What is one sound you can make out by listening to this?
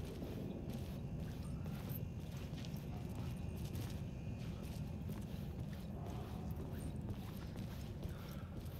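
Footsteps walk slowly on hard ground.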